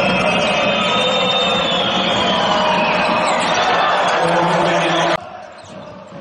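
A large crowd cheers and roars in a big echoing hall.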